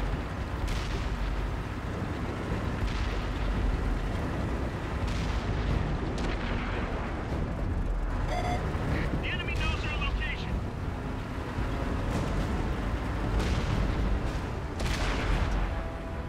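Tank guns fire with sharp booms.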